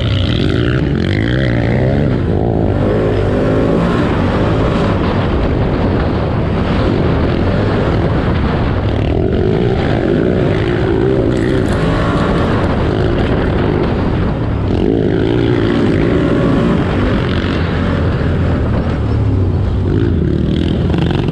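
A quad bike engine roars loudly up close, revving up and down.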